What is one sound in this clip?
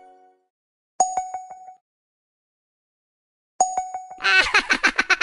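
Short game clicks and bleeps sound at button taps.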